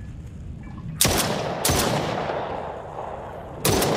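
A gun fires sharp shots.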